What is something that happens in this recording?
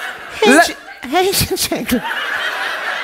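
A man laughs through a microphone.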